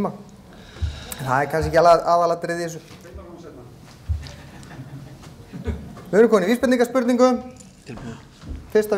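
A man speaks into a microphone, pausing between phrases.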